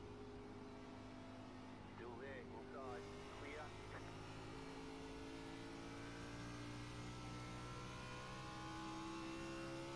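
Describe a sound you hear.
A race car engine drones steadily and slowly rises in pitch.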